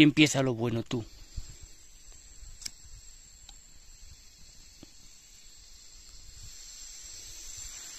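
A gas camping stove hisses steadily.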